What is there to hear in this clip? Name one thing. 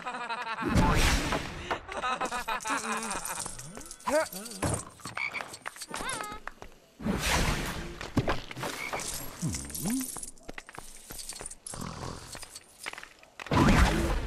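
A magic wand fires crackling zaps.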